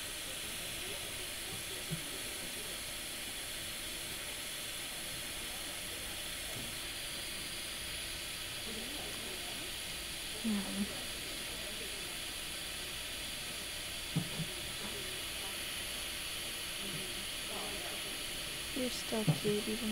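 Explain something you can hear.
A breathing machine hisses steadily through a tube.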